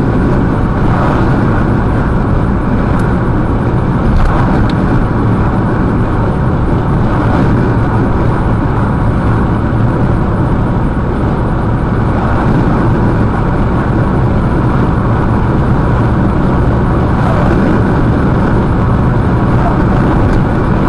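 A car's engine hums steadily with road rumble from inside the car.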